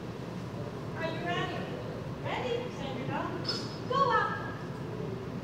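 A woman calls out to a dog in a large, echoing hall.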